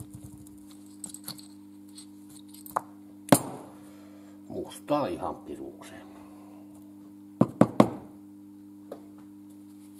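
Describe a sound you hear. Small metal parts clink and tap against each other on a hard surface.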